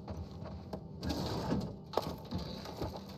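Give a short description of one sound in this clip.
A metal drawer slides open with a rattle.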